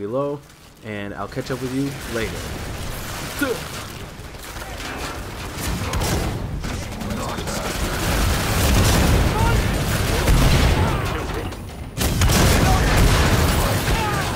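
Guns fire in rapid bursts with loud, booming blasts.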